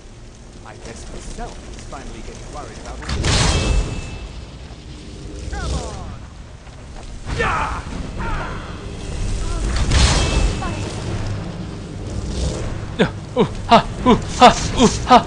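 Magic crackles and hums steadily.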